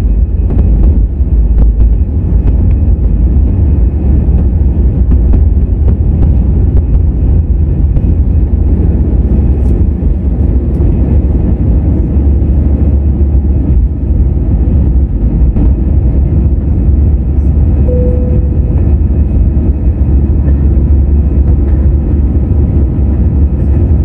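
Jet engines roar loudly and steadily as an airliner takes off and climbs.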